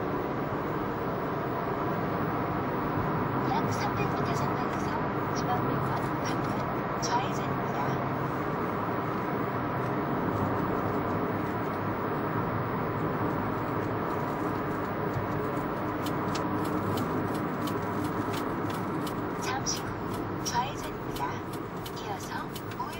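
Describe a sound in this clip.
A car hums steadily as it drives along.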